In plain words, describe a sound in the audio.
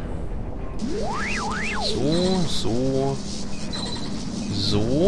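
Short electronic chimes sound as points are linked together.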